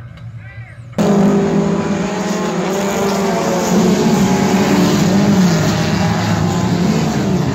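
Several race car engines roar around a dirt track.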